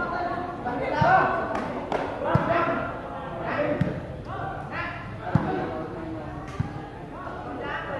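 A crowd of men shouts and cheers nearby.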